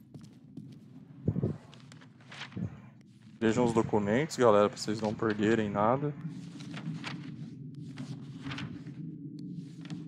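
Paper pages of a book turn with a soft rustle.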